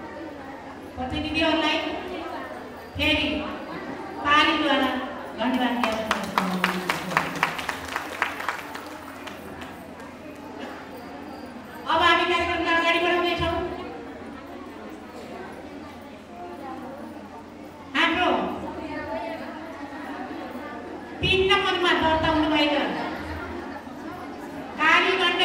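A woman speaks with animation into a microphone, heard through a loudspeaker in a reverberant room.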